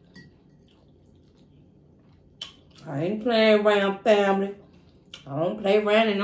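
A fork scrapes against a plate.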